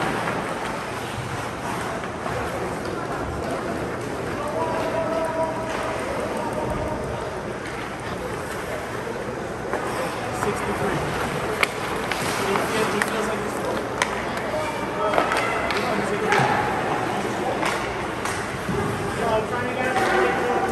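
Spectators murmur and call out in a large echoing arena.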